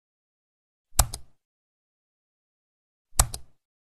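A mouse button clicks twice.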